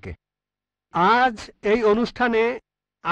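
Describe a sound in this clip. A man speaks into a handheld microphone.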